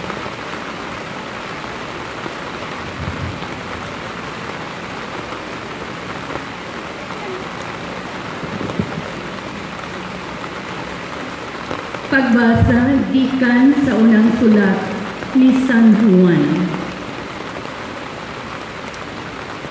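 Rain patters steadily on many umbrellas outdoors.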